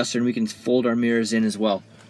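A finger presses a switch with a soft click.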